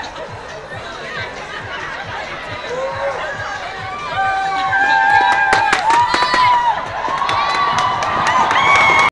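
A crowd of young men and women cheer and shout loudly outdoors.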